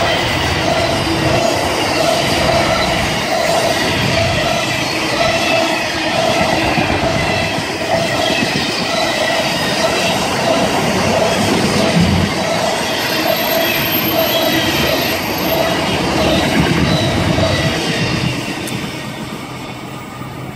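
A long freight train rumbles and clatters past close by.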